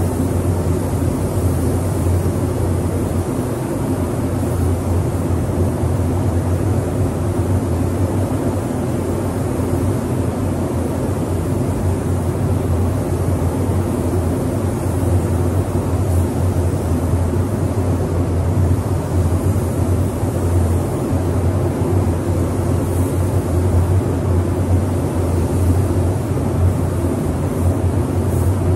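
A spray gun hisses steadily as paint is sprayed.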